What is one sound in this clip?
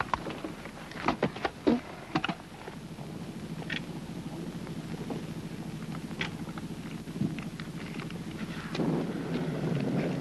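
Footsteps rustle through dry grass as soldiers run.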